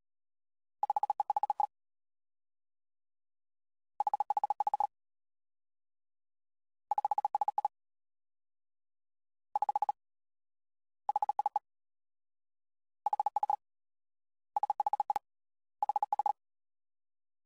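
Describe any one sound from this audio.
Quick bursts of electronic beeping chatter in short runs.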